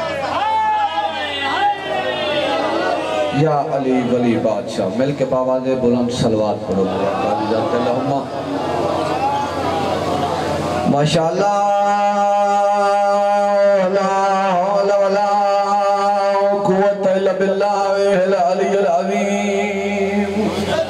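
A young man recites in a loud, mournful chanting voice through a microphone and loudspeakers.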